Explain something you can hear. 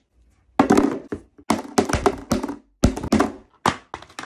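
A hammer bangs down on a phone.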